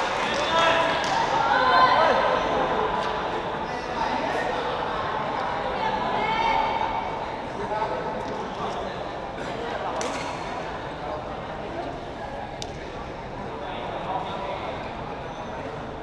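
Players' shoes squeak on the court floor.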